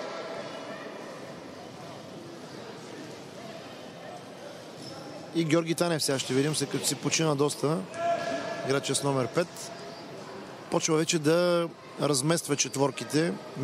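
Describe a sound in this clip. Players' shoes squeak and thud on a hard court.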